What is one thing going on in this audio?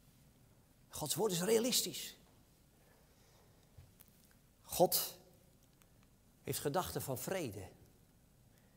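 An elderly man speaks calmly through a microphone, with pauses, in a slightly echoing hall.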